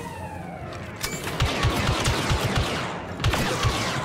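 Laser blasters fire in rapid bursts of sharp zaps.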